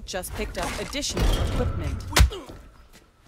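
A heavy blow lands with a dull thud.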